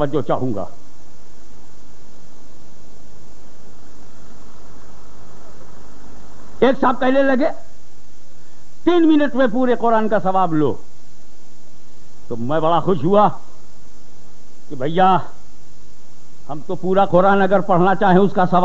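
An elderly man preaches with animation through a microphone and loudspeakers, in bursts with pauses.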